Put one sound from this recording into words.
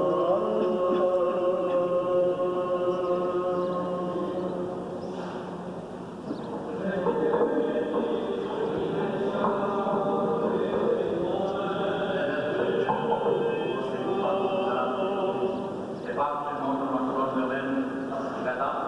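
A group of men chants slowly in a large echoing hall.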